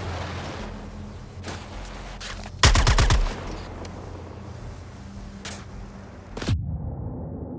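A jet pack roars and hisses in bursts.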